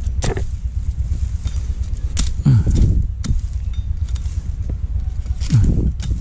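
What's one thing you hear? A sickle blade taps and scrapes against a plant stem.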